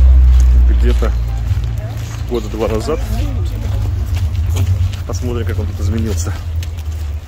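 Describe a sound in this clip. Women talk in passing close by, outdoors.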